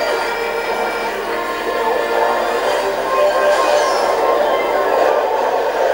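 Upbeat game music plays steadily.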